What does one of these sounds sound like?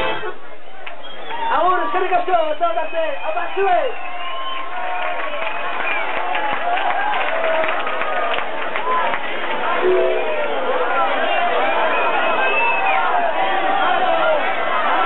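A man shouts and sings excitedly into a microphone through loudspeakers.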